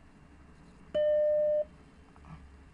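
A computer startup chime sounds once.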